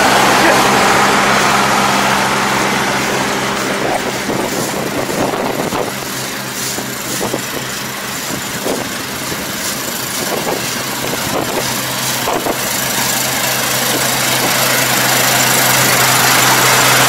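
A harvester engine drones steadily nearby, louder when close and quieter as it moves away.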